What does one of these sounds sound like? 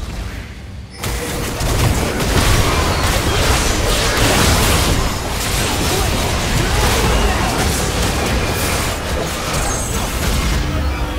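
Magic spells crackle and burst in a fast, dense clash of fighting.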